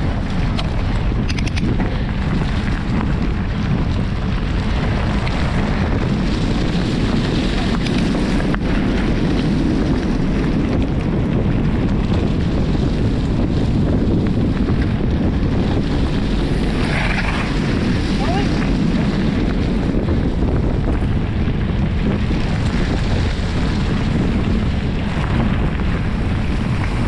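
Wind rumbles loudly against a moving rider.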